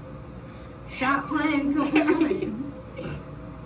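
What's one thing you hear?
A young woman laughs and speaks with animation close by.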